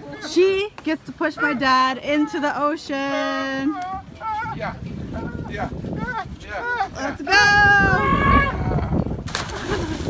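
A man talks and laughs loudly nearby.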